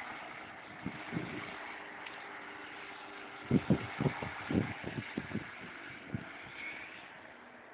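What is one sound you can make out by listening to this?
A motorboat engine drones as the boat speeds past.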